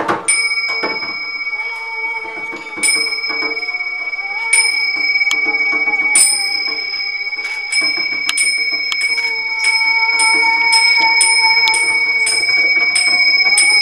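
Small hand cymbals clink and ring brightly.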